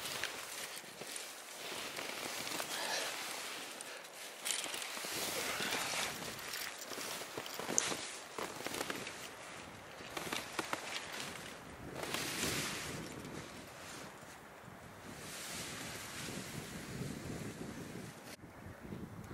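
A loaded sled scrapes and slides over snow.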